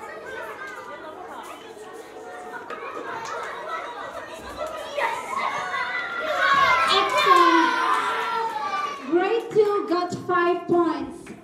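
A crowd of young children chatters and cheers nearby.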